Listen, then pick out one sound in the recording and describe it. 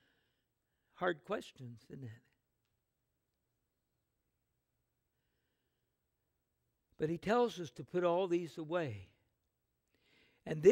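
An elderly man speaks calmly through a microphone, with long pauses.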